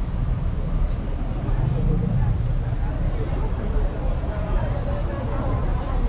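A busy street murmurs with distant voices outdoors.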